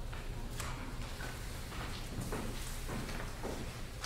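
A man reads aloud in a large echoing hall.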